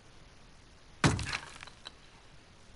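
A hammer strikes metal with a sharp crack.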